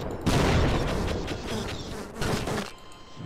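A machine gun fires rapidly.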